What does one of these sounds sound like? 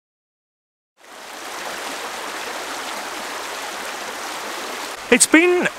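A shallow stream rushes and gurgles steadily.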